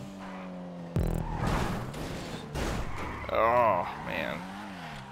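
A car scrapes and bangs against a wall.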